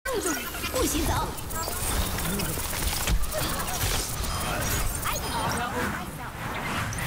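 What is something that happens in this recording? A video game energy gun fires a crackling beam.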